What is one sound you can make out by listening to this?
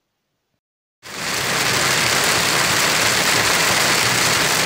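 Heavy rain drums steadily on a car windscreen.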